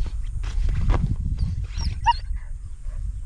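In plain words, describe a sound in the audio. A puppy whimpers softly.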